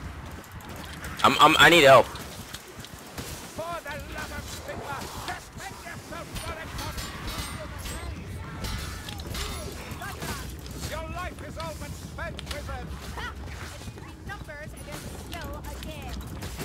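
Blades hack and strike repeatedly in a fierce fight.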